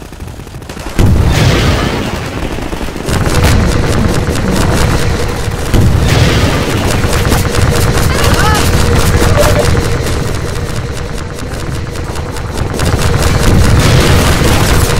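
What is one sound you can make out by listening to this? A rocket launcher fires with a loud whooshing roar.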